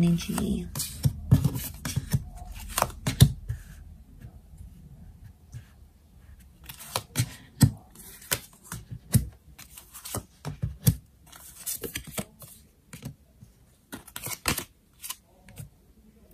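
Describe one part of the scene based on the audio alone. Playing cards slap and slide softly onto a table.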